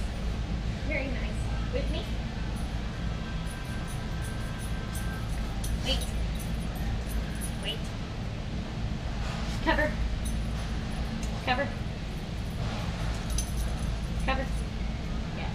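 A young woman talks to a dog in a bright, encouraging voice.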